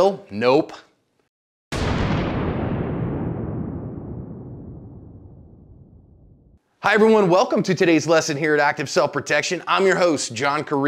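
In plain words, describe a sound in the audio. A middle-aged man speaks calmly and directly into a close microphone.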